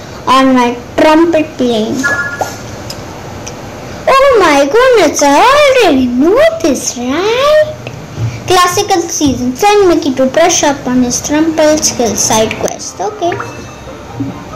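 A young girl talks animatedly in a sing-song voice close to a microphone.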